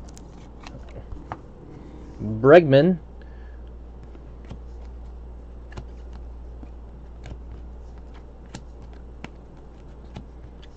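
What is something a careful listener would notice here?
Trading cards flick and slide against each other as they are shuffled by hand.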